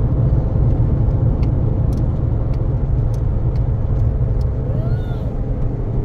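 A car engine rumbles steadily from inside the cabin.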